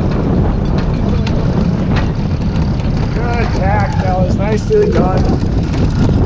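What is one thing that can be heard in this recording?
A winch clicks as a man cranks it.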